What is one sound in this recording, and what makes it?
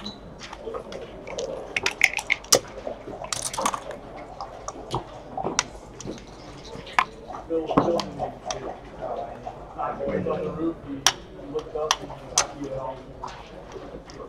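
A game clock button clicks as it is pressed.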